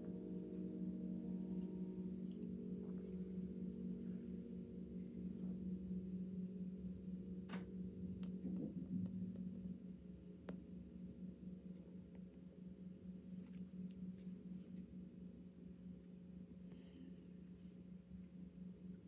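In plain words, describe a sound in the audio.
A piano plays a sustained chord.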